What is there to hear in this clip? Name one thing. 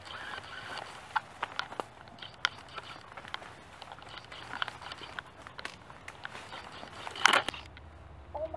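Leaves and branches rustle and crack underfoot.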